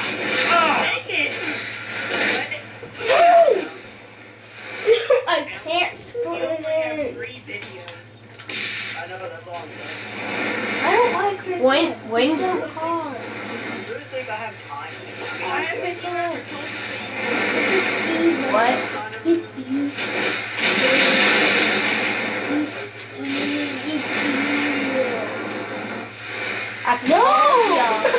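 Video game gunfire pops through a television speaker.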